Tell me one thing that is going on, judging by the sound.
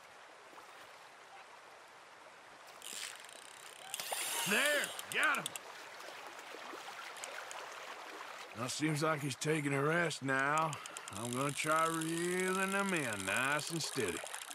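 Water flows gently in a river.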